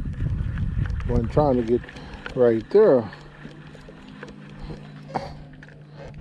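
A fishing reel whirs and clicks as its handle is cranked.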